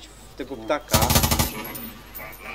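A machine gun fires a short, loud burst.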